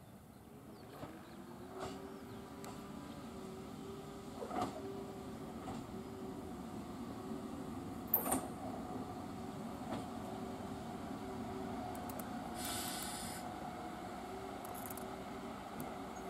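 A diesel railcar engine hums as the railcar slowly approaches.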